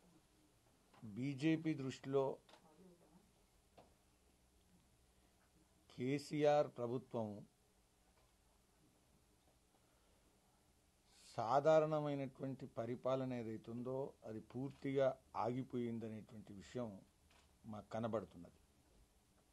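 A middle-aged man speaks calmly into microphones, in short bursts with pauses.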